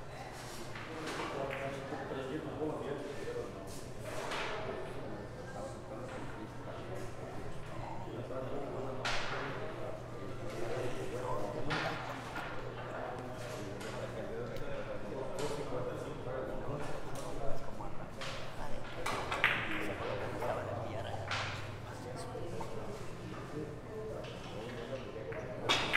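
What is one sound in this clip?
A cue tip strikes a billiard ball.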